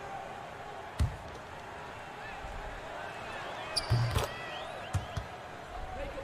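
A basketball thuds on the floor a few times.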